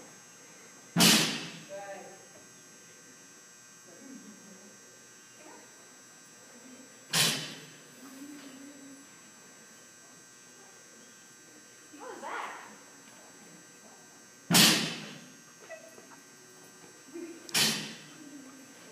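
A dog barks sharply, echoing in a large hall.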